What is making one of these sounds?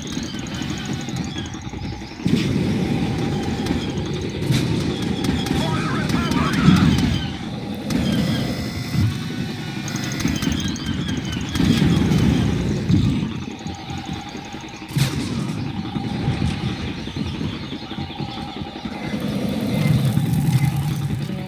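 Footsteps thud on grass and wooden boards.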